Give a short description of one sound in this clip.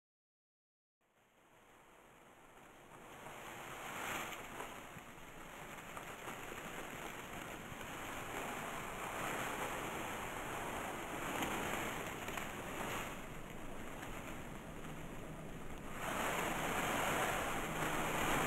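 Dry leaves rustle and crackle close by.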